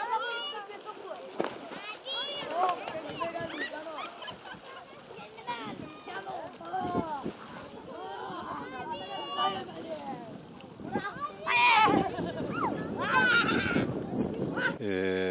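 Children shout and call out nearby.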